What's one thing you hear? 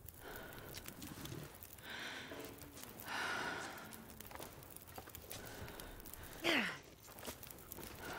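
A campfire crackles and burns.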